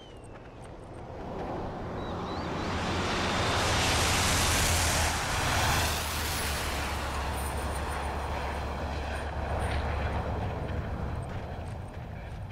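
A large truck approaches along the road with a deep engine rumble and roars past.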